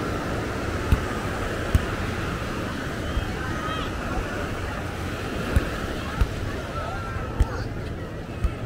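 A crowd of beachgoers chatters in the distance, outdoors.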